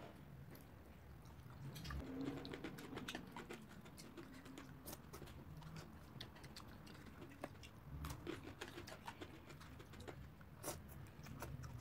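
A young woman slurps noodles loudly, close up.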